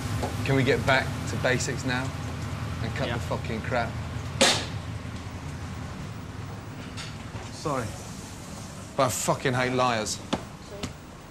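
A man speaks firmly and briskly, close by.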